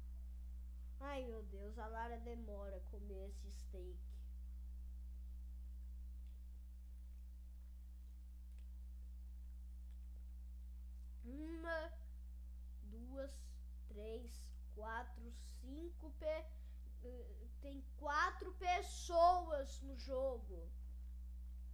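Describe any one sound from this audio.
A boy talks with animation into a close microphone.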